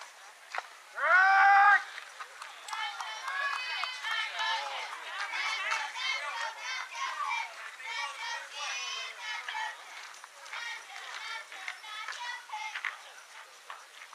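Young girls shout and chatter loudly outdoors.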